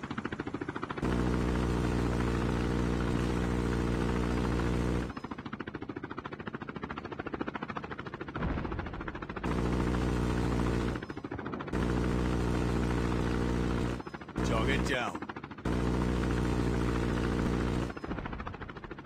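A machine gun fires in long, rapid bursts.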